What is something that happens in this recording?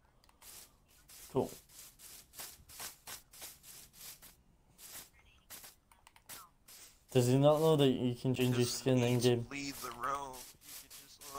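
Footsteps crunch steadily over grass.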